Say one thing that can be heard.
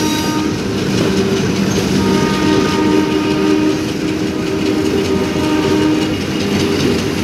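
A passenger train rumbles past close by, its wheels clattering and screeching on the rails.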